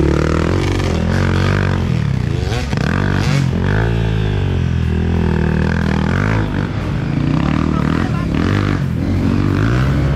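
Dirt bike engines rev and whine loudly as the bikes climb.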